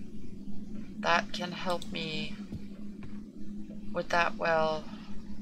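A young woman speaks with animation into a close microphone.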